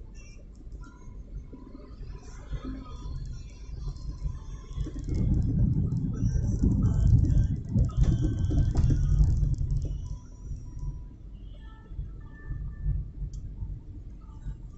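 Tyres rumble on the road surface, growing louder for a while in the middle.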